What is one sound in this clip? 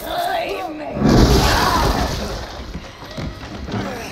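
A loud crash of breaking wood.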